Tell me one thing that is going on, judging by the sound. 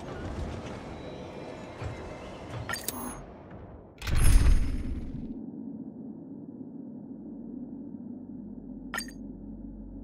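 A short electronic click sounds as a button is pressed.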